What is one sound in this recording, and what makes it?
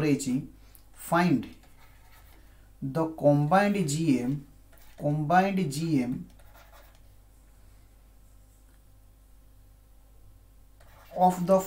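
A man speaks calmly and slowly into a close microphone, with pauses.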